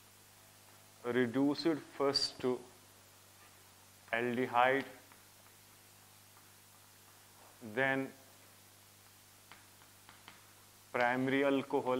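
A young man speaks calmly and clearly, close to a microphone, in short bursts.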